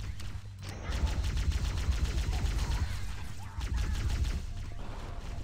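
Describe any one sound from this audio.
Rapid energy weapon fire zaps and crackles in bursts.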